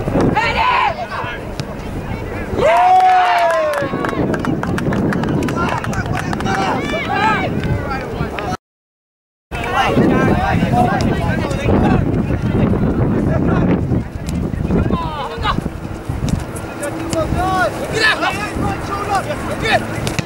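Young players shout and call to each other outdoors on an open field.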